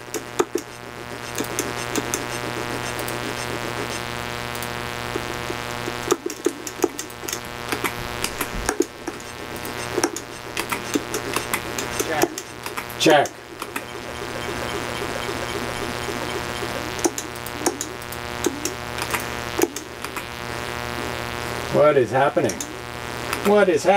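Electronic game sound effects blip and chirp.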